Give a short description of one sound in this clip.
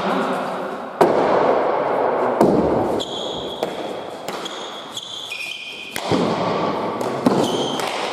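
A ball smacks hard against a wall in a large echoing hall.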